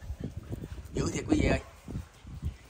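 A dog barks nearby.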